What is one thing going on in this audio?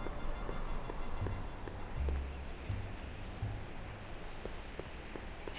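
Footsteps crunch steadily on a dirt path.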